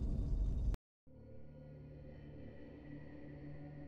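Electric energy hums and crackles steadily.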